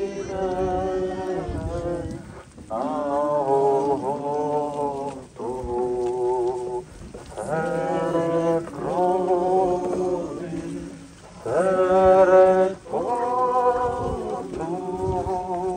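A crowd of men and women sings a slow hymn together outdoors.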